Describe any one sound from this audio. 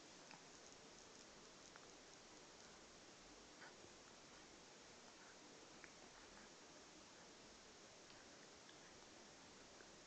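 A baby sucks on a bottle.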